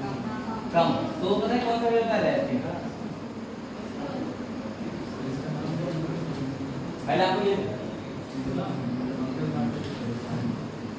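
A young man speaks calmly, explaining, close by.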